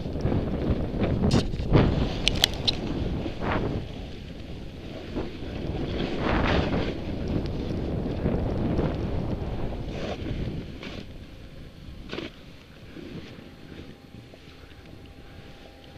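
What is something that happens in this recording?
Skis hiss and scrape over packed snow.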